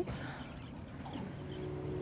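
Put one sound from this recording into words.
Water rushes and splashes against a boat's hull.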